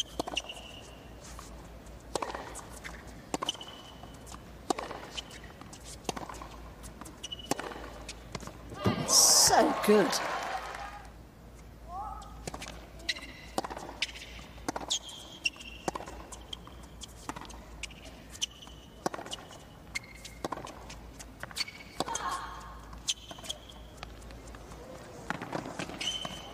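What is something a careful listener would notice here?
Tennis balls are struck sharply with rackets, back and forth.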